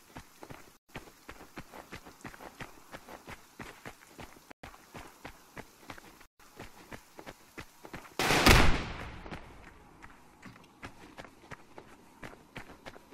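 Footsteps crunch steadily over ground.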